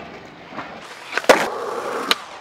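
A skateboard tail snaps against the ground.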